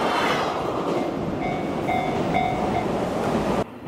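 A railway crossing bell rings.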